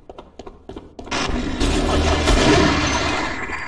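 A shotgun fires a blast.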